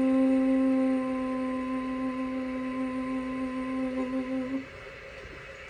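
A young woman sings one long steady note close by.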